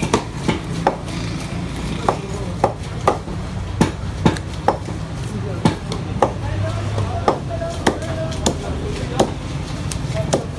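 A cleaver chops sharply on a wooden block, again and again.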